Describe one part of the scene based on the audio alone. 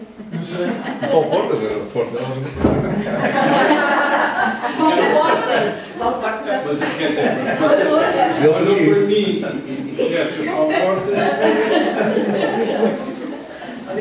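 A group of adults laughs together.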